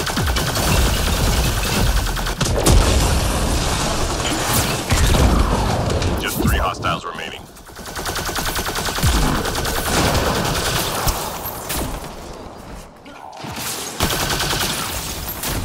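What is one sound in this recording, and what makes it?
Explosions boom with deep rumbling blasts.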